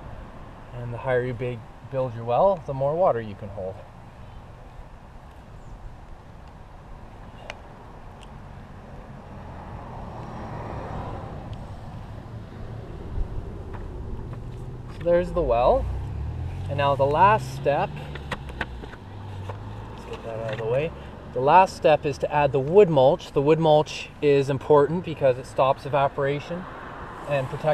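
A man talks calmly, close to the microphone.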